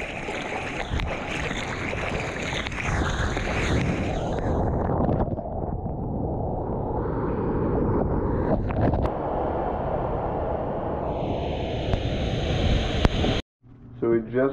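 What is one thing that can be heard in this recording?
Water rushes and splashes loudly close by.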